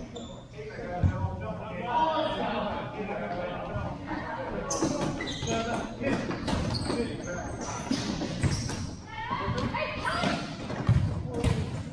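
A ball thuds as players kick it in a large echoing hall.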